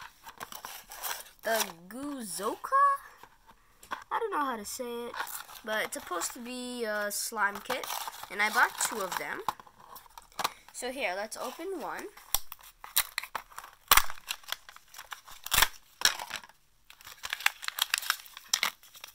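A plastic package rattles and crinkles in hands.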